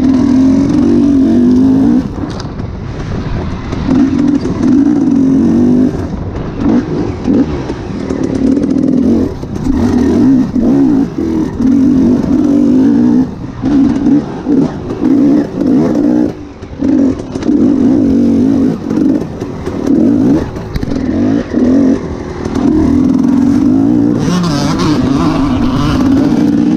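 Tyres crunch over dirt and dry leaves.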